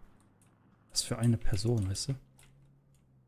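A man speaks into a close microphone.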